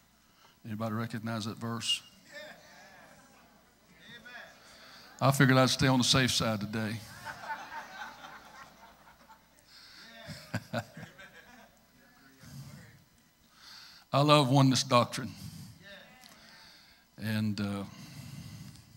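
A middle-aged man preaches with animation into a microphone in a large echoing hall.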